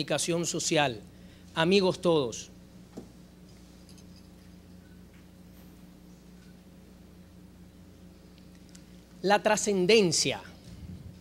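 A young man speaks calmly into a microphone, with long pauses.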